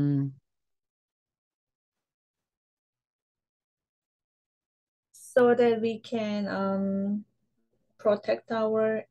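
A woman speaks calmly through an online call, pausing between phrases.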